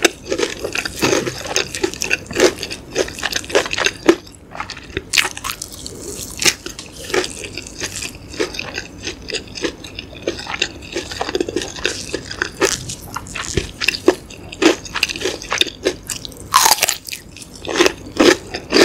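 A young woman chews food wetly and crunchily close to a microphone.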